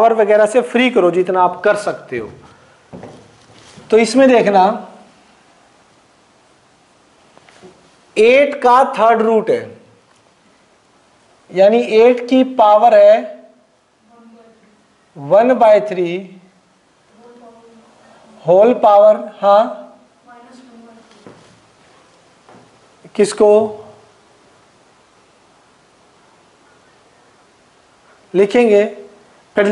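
A man speaks calmly in short bursts, explaining.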